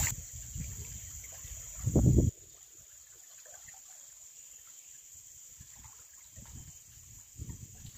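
Leafy branches rustle and scrape against a boat.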